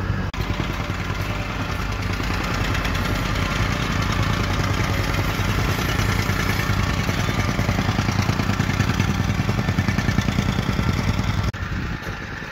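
A rammer compactor engine roars and pounds the ground rapidly.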